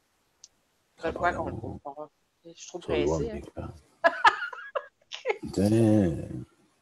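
A middle-aged woman speaks and laughs over an online call.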